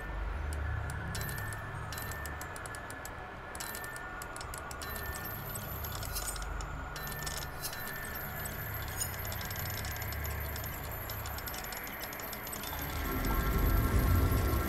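Metal gears click and whir as a mechanical dial turns.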